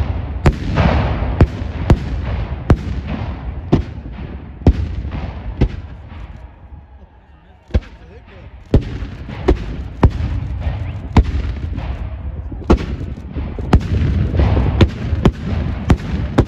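Distant gunfire rumbles and rolls on between the shots.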